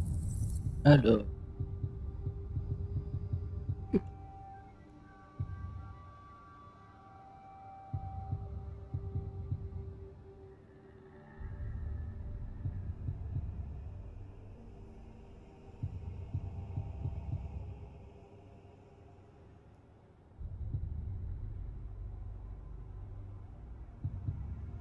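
Soft electronic menu tones chime as the selection changes.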